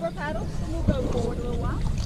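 A paddle splashes in the water.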